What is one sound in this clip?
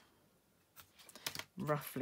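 A pencil scratches lightly on card.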